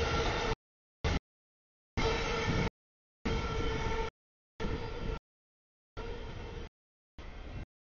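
A freight train rumbles and clatters past nearby.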